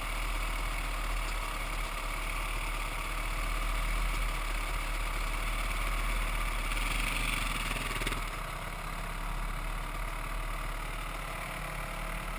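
A dirt bike engine idles close by.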